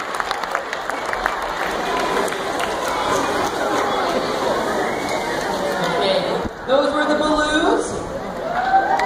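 A crowd of young children chatter and call out in an echoing hall.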